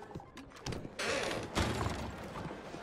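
Swinging wooden doors bang open.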